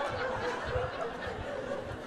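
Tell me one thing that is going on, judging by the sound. A woman laughs into a microphone.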